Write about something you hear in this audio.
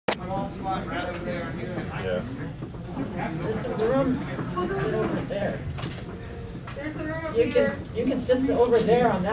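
A speaker talks into a microphone, heard over a loudspeaker in a room.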